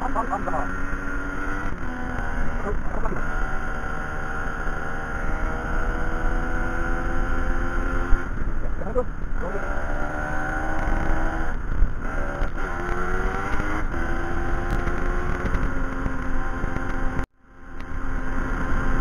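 A motorcycle engine hums steadily, its pitch rising and falling as it shifts.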